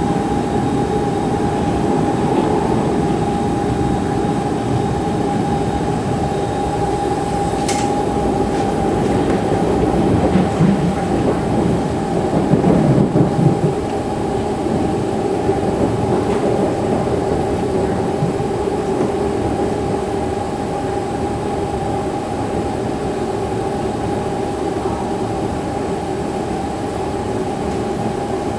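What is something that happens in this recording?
A train rumbles and hums steadily along the track.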